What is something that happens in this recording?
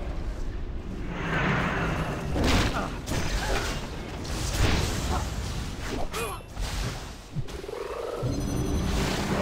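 Spells whoosh and crackle during a fight.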